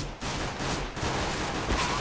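A silenced pistol fires a single muffled shot.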